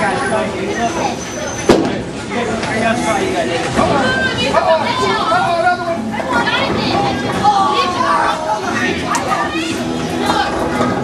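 A crowd of adults chatters in a large echoing hall.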